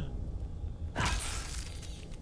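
A blunt blow smacks onto a hard floor.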